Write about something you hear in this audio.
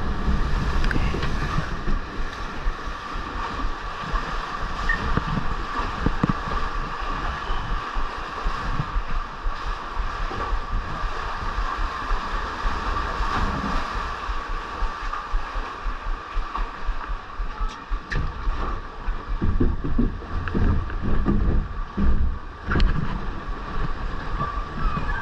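Water splashes and rushes around a ride boat.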